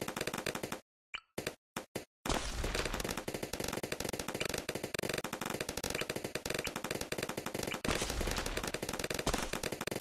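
Balloons pop rapidly in a video game.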